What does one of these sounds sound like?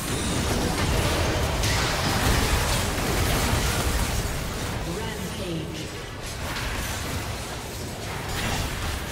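Magic spells and weapon hits from a video game burst and clash loudly.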